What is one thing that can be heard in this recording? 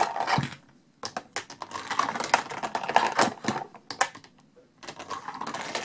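Plastic toy figures click and knock against a plastic playset.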